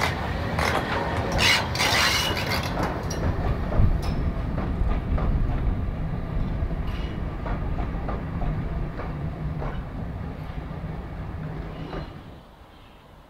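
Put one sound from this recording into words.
Railway coaches roll past, clattering over rail joints.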